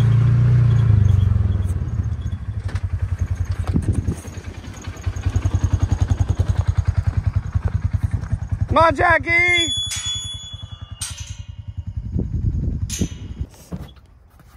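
A utility vehicle engine rumbles and idles nearby.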